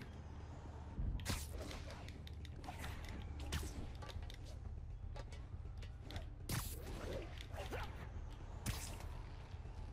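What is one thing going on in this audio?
Swooshing whooshes of swinging through air come in quick bursts.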